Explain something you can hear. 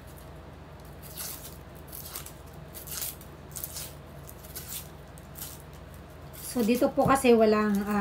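A knife scrapes and peels the dry skin of an onion.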